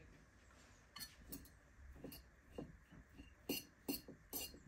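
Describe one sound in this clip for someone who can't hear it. A fork scrapes and stirs food in a ceramic bowl.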